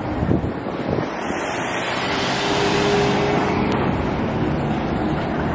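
A car drives past close by on a street.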